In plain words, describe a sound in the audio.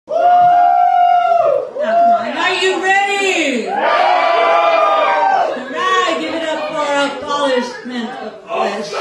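A young woman sings loudly into a microphone, heard through loudspeakers.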